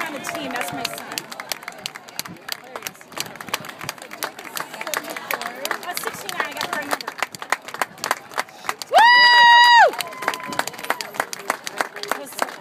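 A large crowd claps its hands steadily.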